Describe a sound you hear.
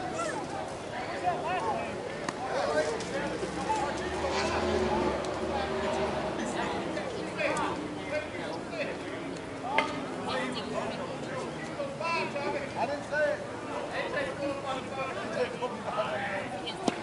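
Several men talk and call out across an open field outdoors.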